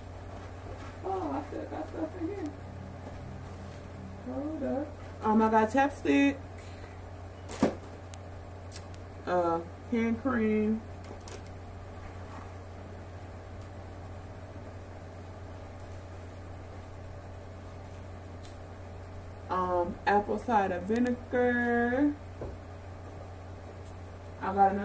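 A young woman speaks in short bursts close by.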